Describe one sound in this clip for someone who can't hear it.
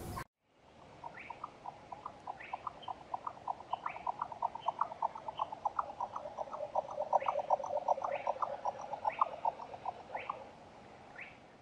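A small wading bird calls with a rapid, steady run of dry ticking notes.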